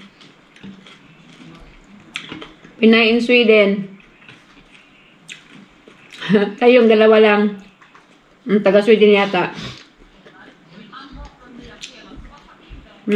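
A woman chews food noisily.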